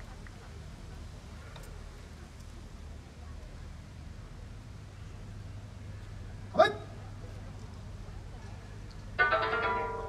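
Large flags flap in the air.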